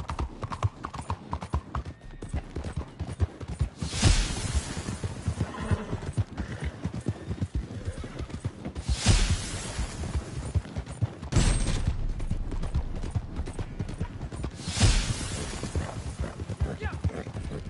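Horse hooves pound rapidly on a dirt road.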